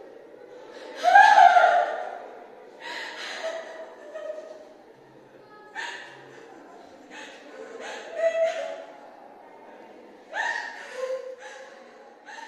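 A young woman laughs in bursts close by.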